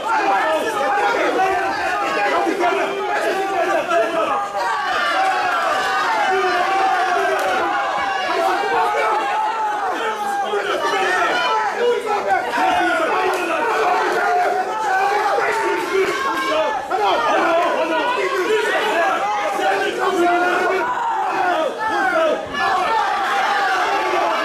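A crowd of spectators shouts and cheers loudly in a large echoing hall.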